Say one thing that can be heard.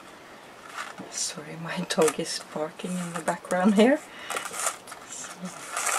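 Small metal pieces scrape softly on a card.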